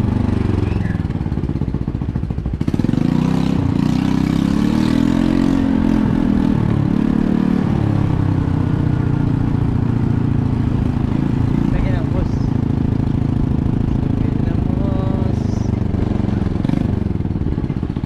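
A motorbike engine idles and hums steadily.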